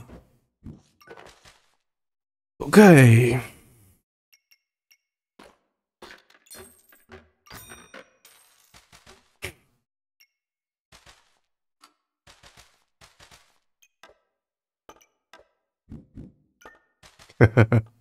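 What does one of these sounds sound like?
A young man speaks close to a microphone, in short bursts with animation.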